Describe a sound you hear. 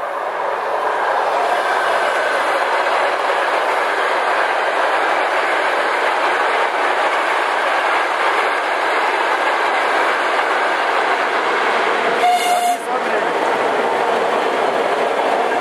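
A train's wheels clatter loudly on the track as it passes close by.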